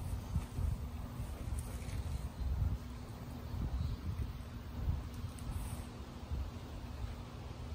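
A tortoise's feet scrape and thud softly on dry dirt.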